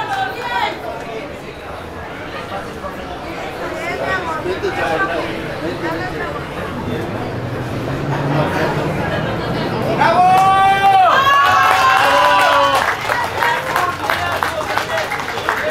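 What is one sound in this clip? A crowd of adults and children chatters in the background outdoors.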